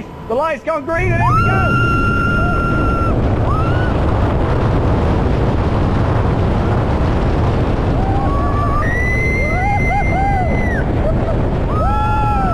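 Wind roars loudly past at high speed.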